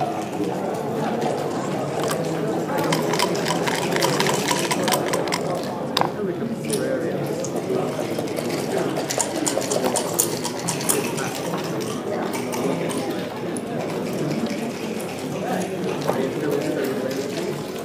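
Game pieces click against a wooden board.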